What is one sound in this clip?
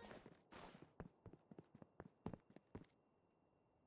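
Quick footsteps patter on stone steps.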